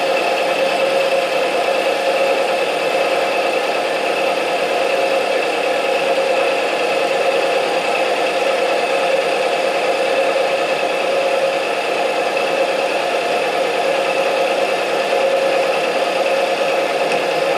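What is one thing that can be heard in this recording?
A milling machine cutter grinds steadily through metal with a high whine.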